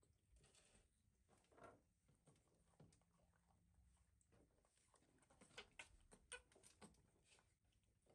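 Young macaques munch juicy pomegranate seeds with wet smacking and clicking.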